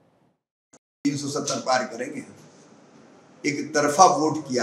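A middle-aged man speaks into a microphone with animation.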